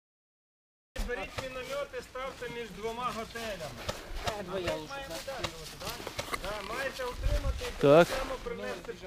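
Several men talk loudly and excitedly outdoors, close by.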